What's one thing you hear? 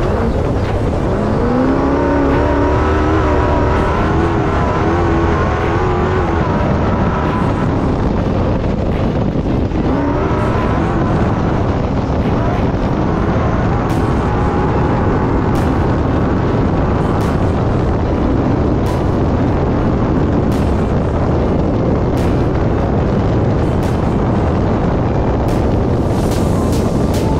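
An engine roars steadily as a vehicle drives fast.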